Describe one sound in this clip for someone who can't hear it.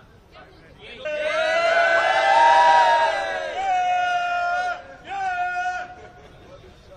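A crowd of young men cheers and shouts loudly together.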